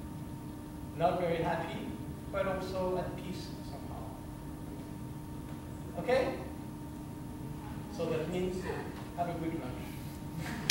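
A violin plays short bowed phrases with pauses between them, in an echoing room.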